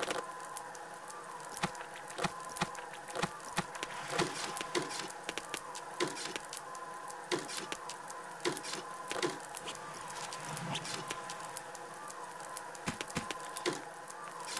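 Short clicks and soft clatters sound as items are picked up and dropped in quick succession.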